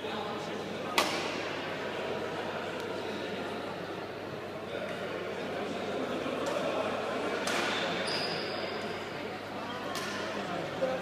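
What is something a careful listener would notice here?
Shuttlecocks are struck sharply by rackets.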